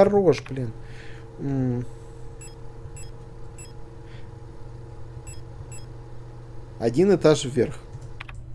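Electronic menu beeps and chimes sound in quick succession.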